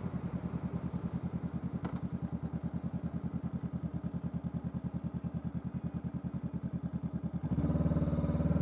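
A parallel-twin motorcycle engine burbles as the bike slows with the throttle closed.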